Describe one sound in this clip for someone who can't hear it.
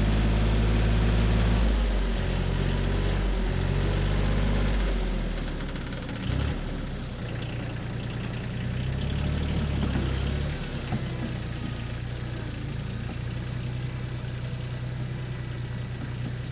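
A tractor engine rumbles and revs at a distance.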